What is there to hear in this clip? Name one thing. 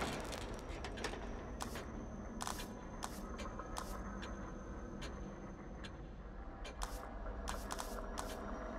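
Short electronic blips sound as menu options are selected.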